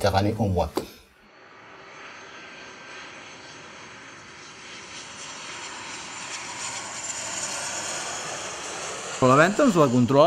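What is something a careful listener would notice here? A jet airplane roars overhead, growing louder as it passes low.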